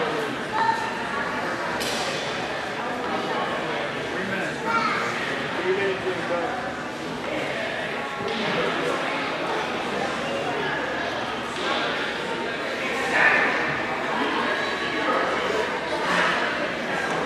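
Bodies shift and scuff on a foam mat during grappling.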